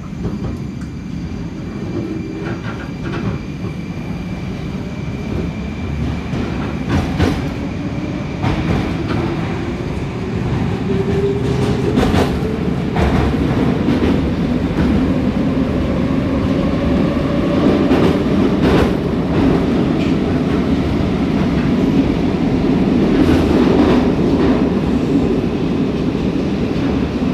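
A metro train roars through a tunnel as it speeds up.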